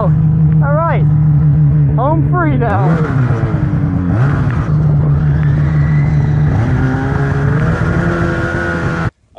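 A snowmobile engine drones loudly close by, its pitch rising and falling as it revs.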